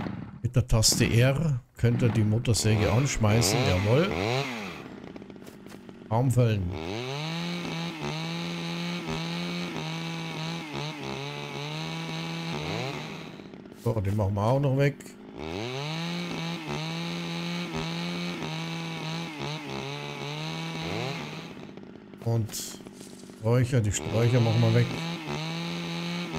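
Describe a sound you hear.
A chainsaw engine idles and revs up and down.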